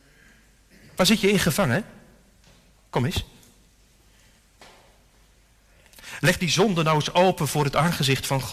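A man speaks with emphasis into a microphone, in pauses, in a large echoing hall.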